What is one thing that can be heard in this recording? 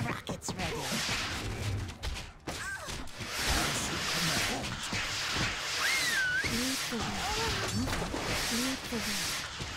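Soldiers shout and cry out in battle.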